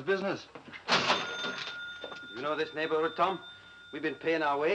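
A shop till rings with a bell.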